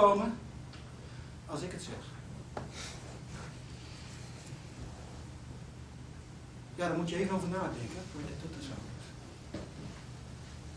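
A man speaks slowly and expressively, with long pauses, in a quiet hall with a slight echo.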